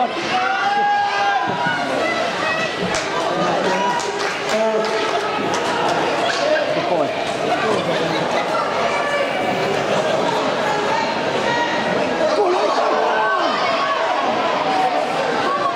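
Ice skates scrape and carve on ice.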